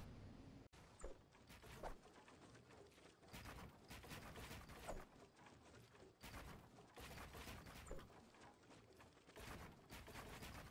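Building pieces snap into place with quick, repeated thuds.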